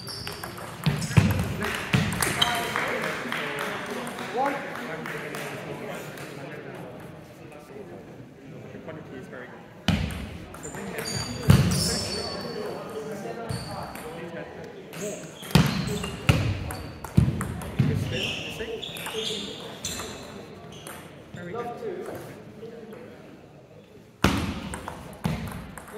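A table tennis ball clicks back and forth off the table and paddles in a large echoing hall.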